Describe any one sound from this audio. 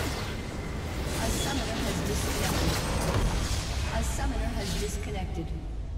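A large structure explodes and crumbles with a heavy crash.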